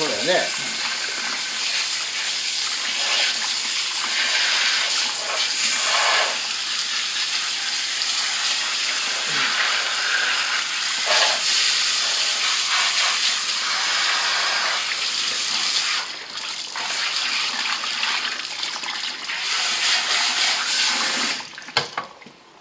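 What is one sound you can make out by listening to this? Water from a shower spray hisses and splashes into a sink.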